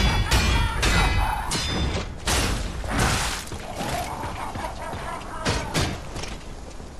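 Metal blades clash and slash with sharp ringing hits.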